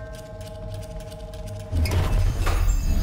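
A metal door handle rattles.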